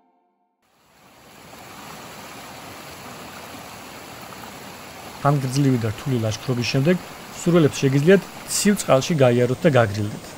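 Shallow water flows and splashes over stones.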